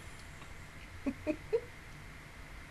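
A young woman giggles briefly, close to a microphone.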